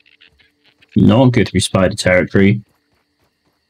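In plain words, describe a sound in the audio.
A man speaks into a microphone close up, with animation.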